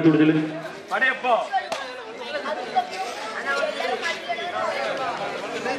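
A crowd of children chatters and calls out all around, outdoors.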